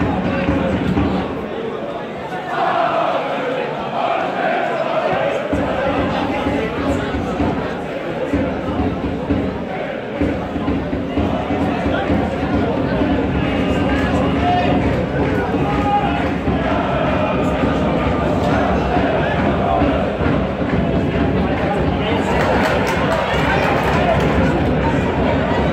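A large crowd of spectators chants and sings loudly outdoors.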